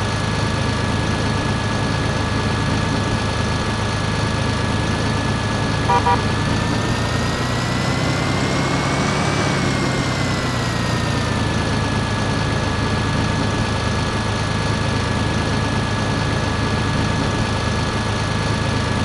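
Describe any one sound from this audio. A diesel tractor engine idles.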